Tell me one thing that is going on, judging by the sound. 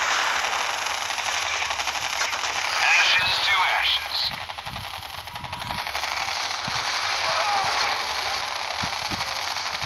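Explosions boom and gunfire rattles in a game battle.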